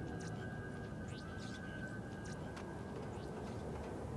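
Footsteps patter on the ground.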